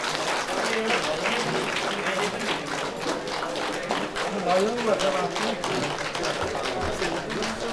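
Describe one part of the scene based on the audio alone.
A man speaks steadily into a microphone, heard over loudspeakers in a room that echoes.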